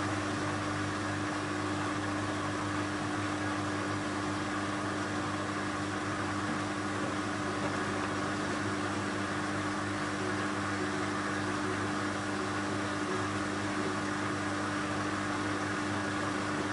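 A washing machine drum turns with a steady motor hum.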